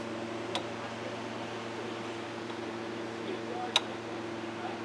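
Cable connectors click and clack.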